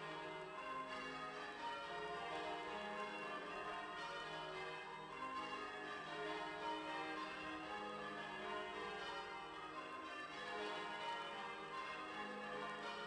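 Large church bells ring out in a steady, echoing peal.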